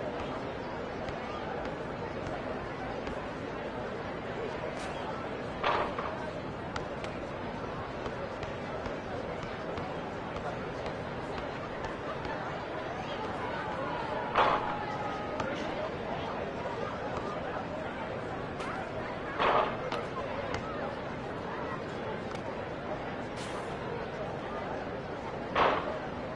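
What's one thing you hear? A crowd murmurs steadily outdoors.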